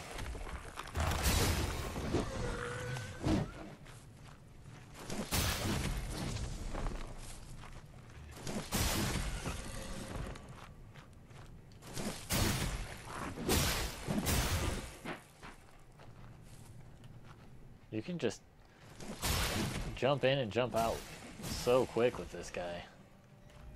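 A blade swishes and strikes with heavy thuds in quick bursts.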